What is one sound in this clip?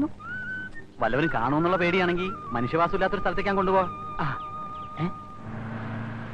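A man speaks with animation nearby.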